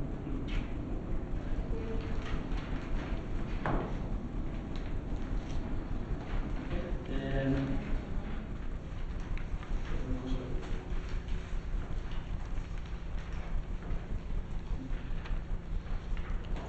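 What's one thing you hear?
A man speaks calmly into a microphone, heard from a distance.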